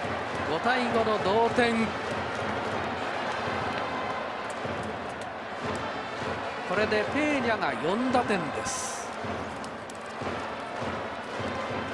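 A large crowd cheers and chatters in a big stadium.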